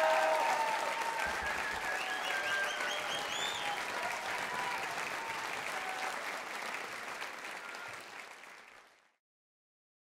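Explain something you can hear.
A large audience claps and cheers in a big hall, then fades away.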